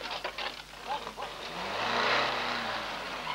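A car rolls and crunches over rocks down a slope.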